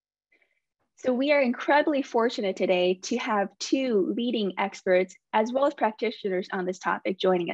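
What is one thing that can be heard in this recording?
A young woman speaks calmly through a microphone over an online call.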